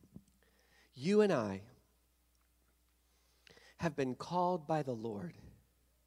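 A man speaks with emphasis through a microphone in a large hall.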